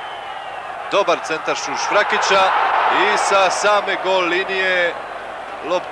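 A stadium crowd's roar swells loudly.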